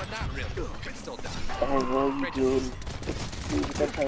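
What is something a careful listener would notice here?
Magic blasts whoosh and crackle in a video game fight.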